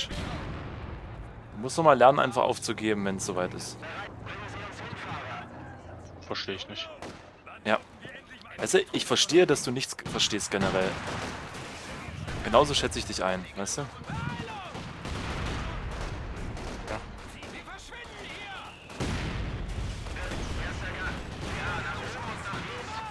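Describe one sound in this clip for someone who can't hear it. Gunfire crackles in short bursts.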